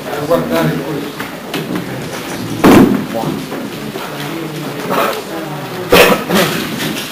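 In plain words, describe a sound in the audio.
Chairs scrape and knock as men get up from a table.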